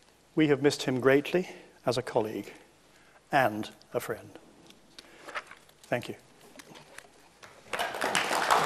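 An elderly man speaks calmly and formally through a microphone.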